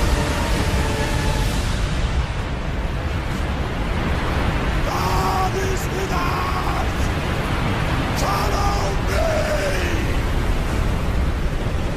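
Walls of water roar and crash down loudly.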